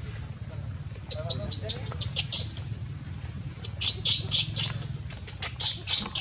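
A baby monkey squeals and shrieks in short, sharp bursts.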